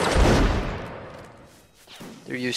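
A volley of musket fire booms and rumbles away.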